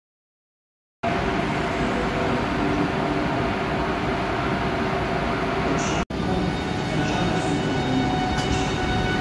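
A locomotive hums steadily while standing still.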